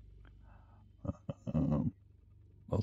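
A man speaks briefly into a microphone, close by.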